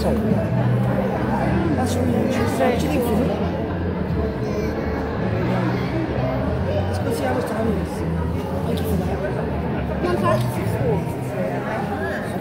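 A young girl talks close by.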